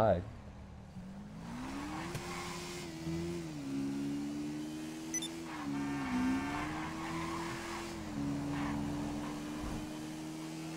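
A motorcycle engine hums and rises in pitch as it speeds up.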